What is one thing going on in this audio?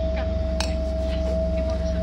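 A metal spoon scrapes and clinks against a glass jar.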